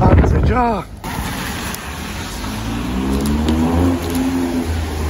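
Car tyres hiss on a wet road.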